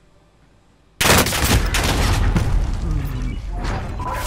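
Gunfire rattles loudly and close.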